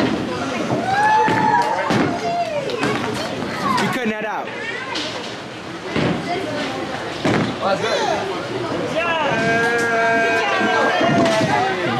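A bowling ball rolls down a lane and rumbles.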